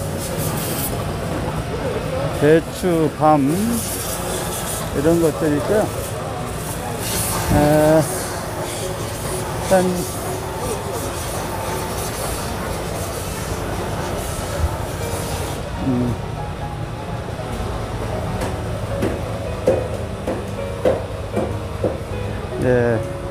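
A busy outdoor crowd murmurs steadily in the background.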